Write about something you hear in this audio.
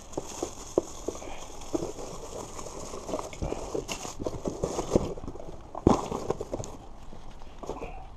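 Cardboard boxes rustle and thump.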